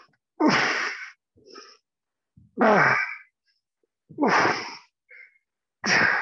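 A man speaks in short, energetic bursts close to a microphone.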